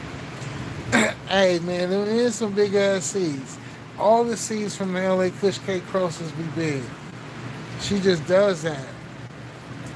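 A man speaks calmly, close to a phone microphone.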